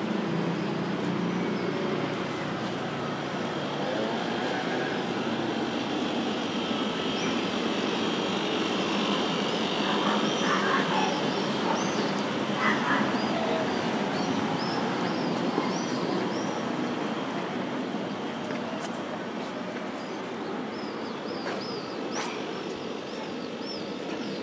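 Light traffic hums along a street outdoors.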